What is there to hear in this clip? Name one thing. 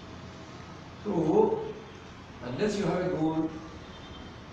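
A man speaks nearby in a quiet room.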